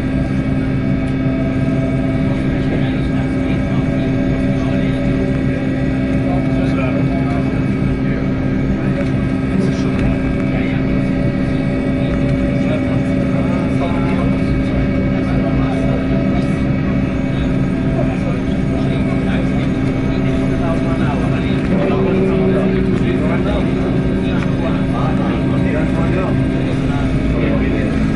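Propeller engines drone loudly and steadily.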